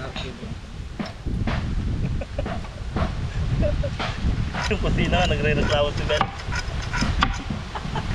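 A tool scrapes and cuts through wood.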